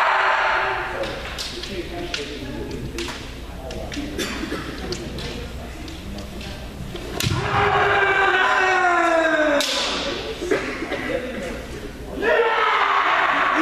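Men shout loud, drawn-out battle cries in a large echoing hall.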